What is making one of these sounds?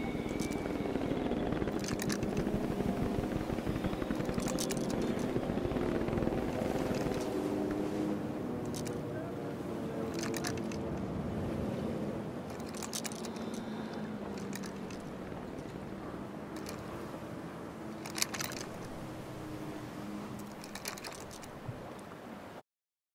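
Sea water laps and splashes steadily.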